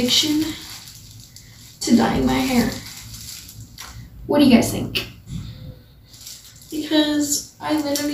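A young woman talks casually close by, in bursts.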